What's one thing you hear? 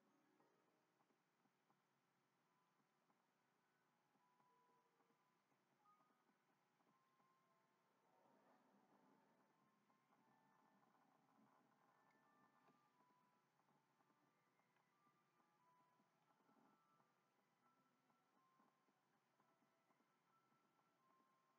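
Soft video game music plays a gentle, slow melody.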